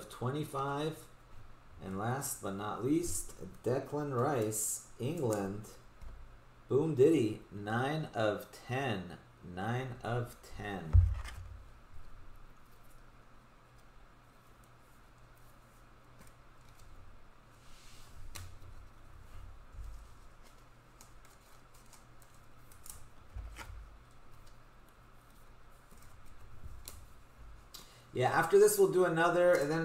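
Plastic card sleeves rustle and tap in a pair of hands.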